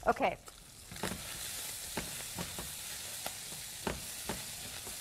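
A spatula scrapes and taps against a pan.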